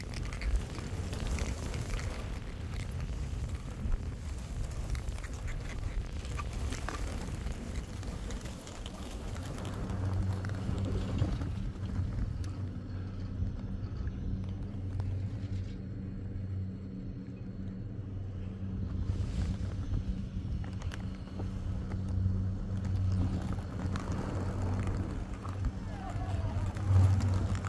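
Skis hiss and scrape over packed snow.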